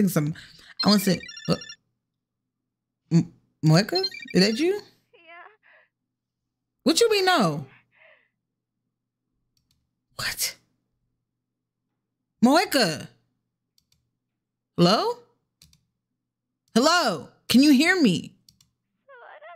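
A young woman speaks loudly and with animation in short bursts, close to a headset microphone.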